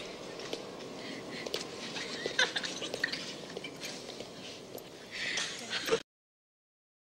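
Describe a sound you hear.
A group of children laugh and chatter excitedly.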